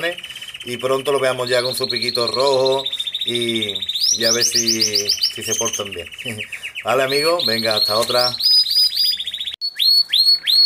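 A baby bird chirps.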